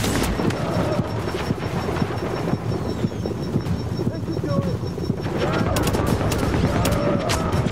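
Flames roar and crackle nearby.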